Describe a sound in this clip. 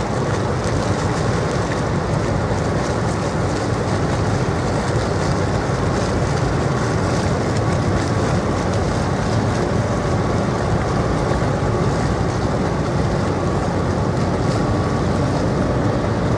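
A ship's engine rumbles low and steady close by.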